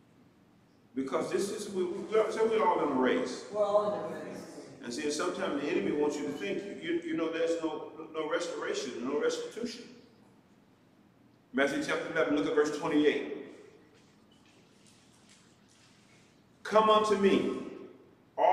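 A man speaks steadily through a microphone, pausing between phrases.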